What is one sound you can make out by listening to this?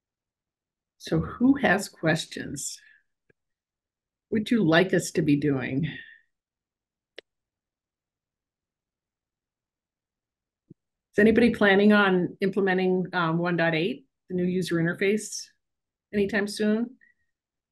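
A middle-aged woman speaks warmly over an online call, in short bursts with pauses.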